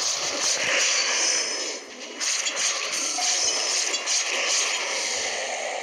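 Metal blades clash and ring in a fight.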